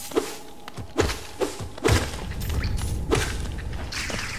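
Sharp game sword slashes and hits ring out.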